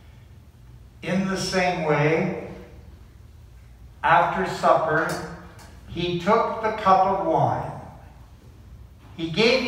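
A man speaks slowly and solemnly, echoing in a large, reverberant room.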